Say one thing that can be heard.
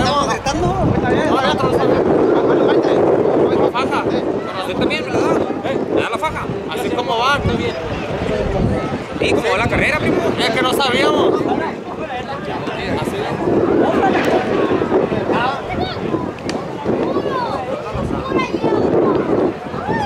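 A crowd of men and women chatter and call out nearby, outdoors.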